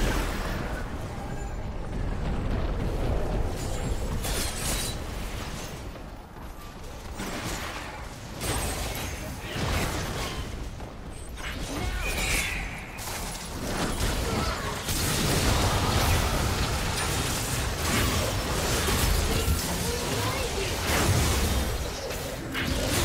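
Magic blasts and hits crackle and boom in a fast fight.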